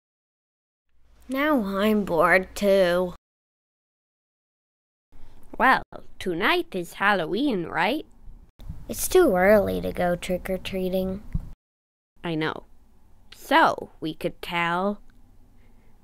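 A man speaks in an animated, cartoonish voice.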